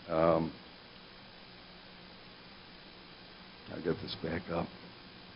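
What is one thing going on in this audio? A man speaks calmly into a microphone in a large room.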